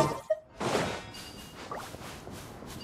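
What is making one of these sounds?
Magical zaps crackle and sparkle.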